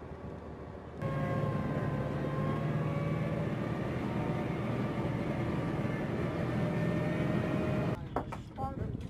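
A tracked armoured vehicle roars and clatters as it drives past.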